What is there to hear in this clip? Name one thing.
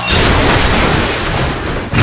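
A tractor crashes and tumbles with a metal clatter.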